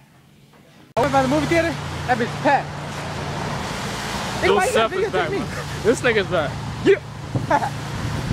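A young man talks with animation close up outdoors.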